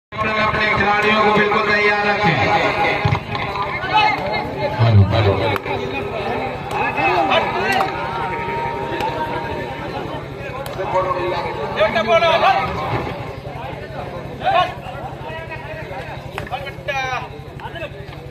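A young man chants rapidly and repeatedly.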